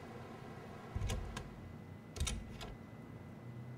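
A heavy door thuds open and shut.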